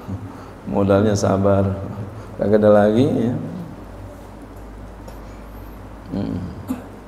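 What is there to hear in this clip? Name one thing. An elderly man speaks calmly into a microphone in an echoing hall, with pauses between phrases.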